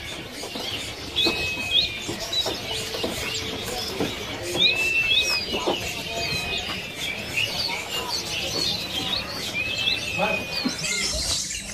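A bird whistles and chirps in short, sharp calls.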